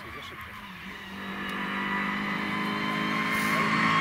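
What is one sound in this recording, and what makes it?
A rally car engine approaches from a distance.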